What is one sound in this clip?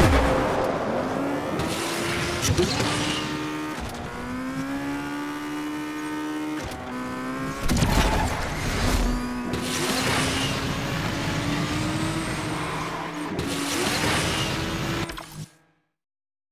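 A racing car engine roars and revs at high speed.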